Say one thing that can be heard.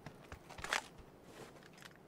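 Footsteps thud on a hard staircase.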